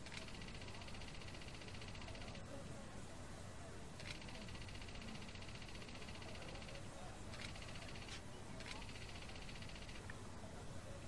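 Rapid soft electronic blips chatter in short bursts.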